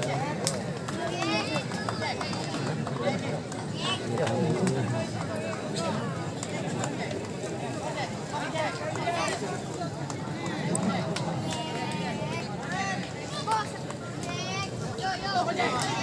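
A large crowd of men chatters and shouts outdoors.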